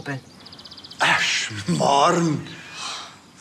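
An elderly man answers nearby in a friendly tone.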